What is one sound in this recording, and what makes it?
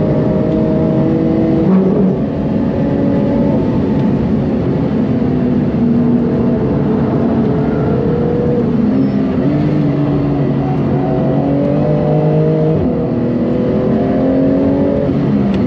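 Tyres hum on the track at high speed.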